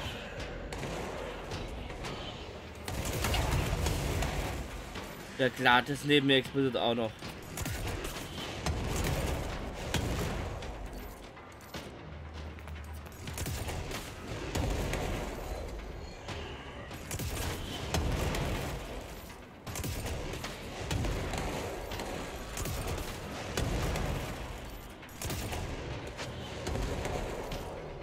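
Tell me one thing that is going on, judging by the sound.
A pistol fires in bursts of shots.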